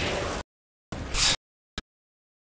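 A gun fires with a loud blast.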